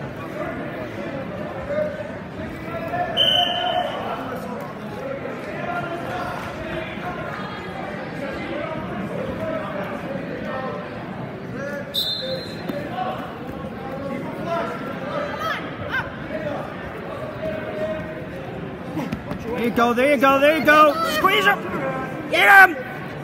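Wrestlers' bodies thump and scuff on a mat.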